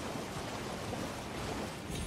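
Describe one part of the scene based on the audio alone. Water splashes under a galloping horse.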